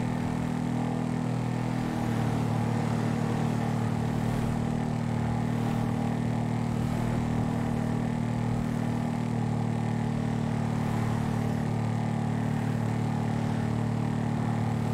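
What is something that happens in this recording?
A motorcycle engine drones steadily at speed, shifting up in pitch after a moment.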